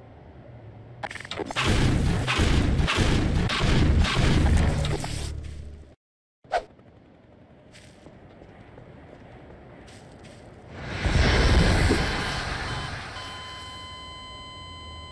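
A huge monster roars and snarls loudly.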